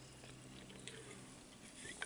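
A man sips a drink from a can.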